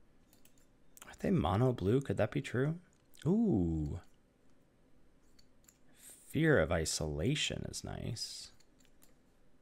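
A man speaks with animation into a close microphone, with short pauses.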